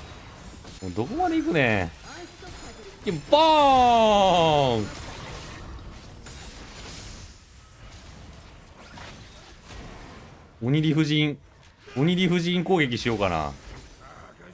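A young man shouts excitedly into a microphone.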